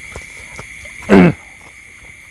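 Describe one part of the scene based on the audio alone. A middle-aged man lets out a loud, falling exclamation close by.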